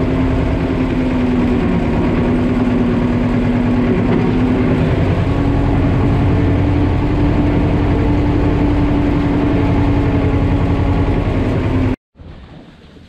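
A tractor engine rumbles steadily up close as the tractor drives along.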